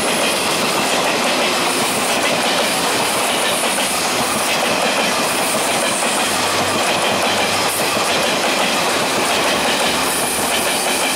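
A passenger train rumbles past close by, its wheels clattering over the rail joints.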